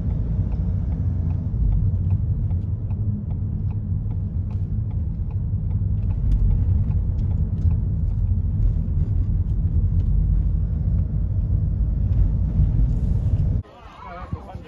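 A car engine rumbles steadily from inside a moving car.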